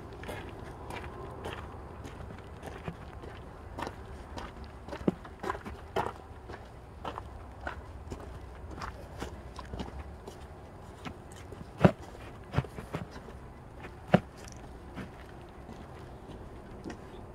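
Footsteps crunch on gravel and dry leaves outdoors.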